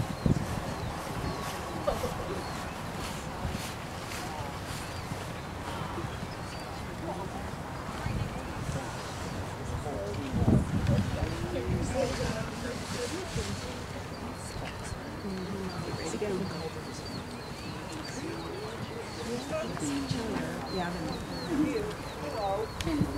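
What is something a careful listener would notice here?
A horse canters on a dirt arena, hooves thudding.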